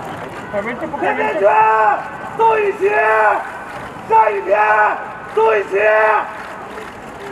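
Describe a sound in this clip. Young women call out cheerfully together nearby.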